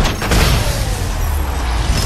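A triumphant video game fanfare plays.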